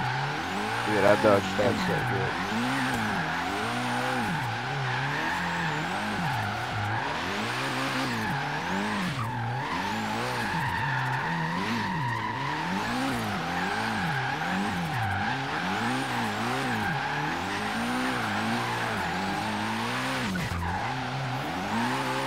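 Tyres screech steadily while a car drifts.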